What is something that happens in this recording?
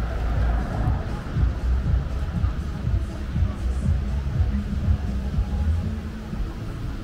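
A car engine rumbles close by and fades away.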